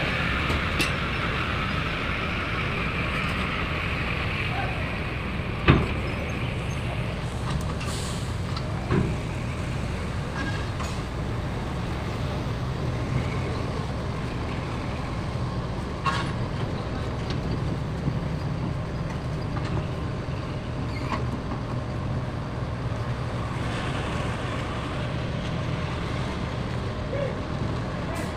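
A truck engine rumbles low and steady as the truck rolls slowly away.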